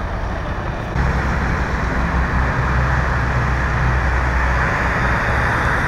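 A vehicle's engine rumbles as it drives along a highway.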